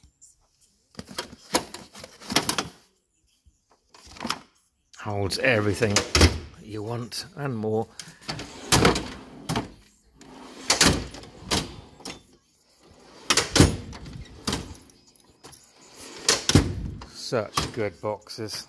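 Metal tool drawers slide open and shut with clanks and rattles.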